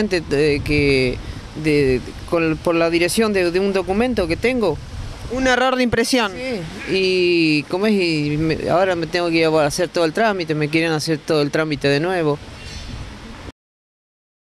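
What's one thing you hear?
A middle-aged man speaks calmly into a microphone up close.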